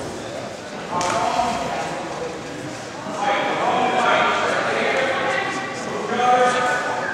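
Men talk to each other close by in a large echoing hall.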